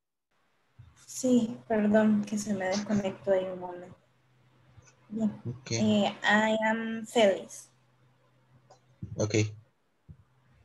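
A middle-aged woman speaks into a headset microphone over an online call.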